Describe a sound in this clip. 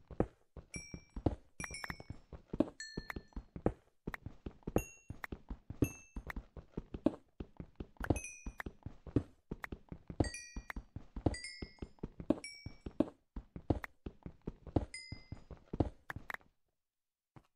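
A pickaxe chips rapidly at stone and coal.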